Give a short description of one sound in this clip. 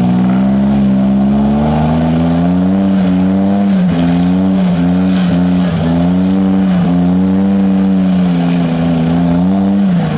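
Tyres churn and splash through thick mud.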